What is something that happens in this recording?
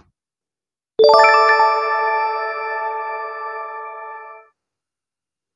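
A bright chiming jingle plays and fades.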